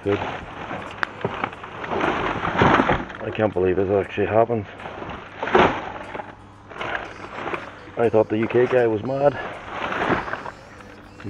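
Plastic bags rustle and crinkle as they are handled.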